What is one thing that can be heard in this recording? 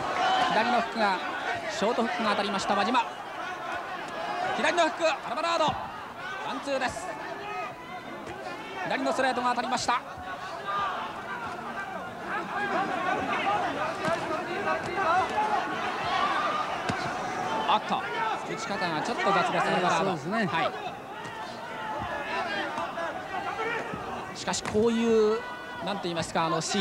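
Gloved punches thud against a body.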